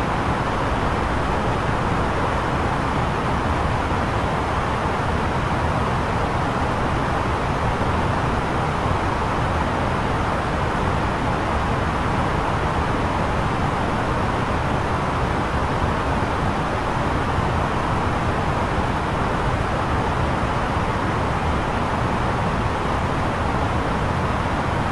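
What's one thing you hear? Jet engines and rushing air roar steadily.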